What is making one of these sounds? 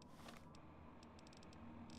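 Soft electronic clicks tick as a game menu is scrolled through.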